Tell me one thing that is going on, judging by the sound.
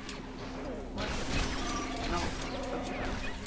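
A loud explosion booms in a video game.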